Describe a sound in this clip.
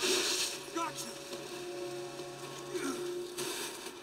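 A body thuds down into snow.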